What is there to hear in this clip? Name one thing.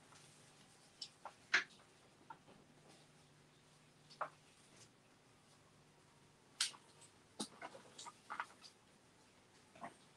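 Small objects tap and click on a table.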